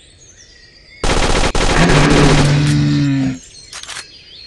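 A submachine gun fires a loud rapid burst.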